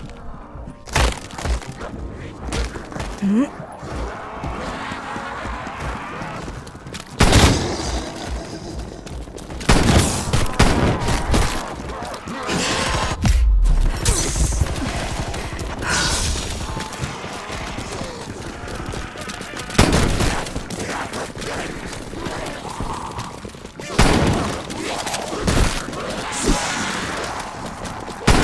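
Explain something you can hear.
Gunshots blast loudly in quick bursts.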